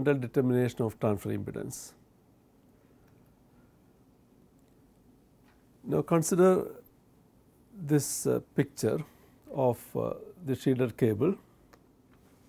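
A middle-aged man speaks calmly into a close microphone, in short bursts.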